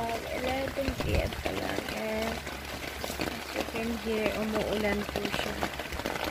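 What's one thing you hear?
A child speaks softly close by.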